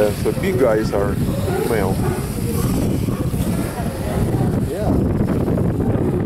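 Sea lions bark and groan.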